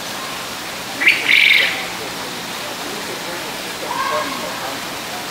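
A small bird chirps shrilly nearby.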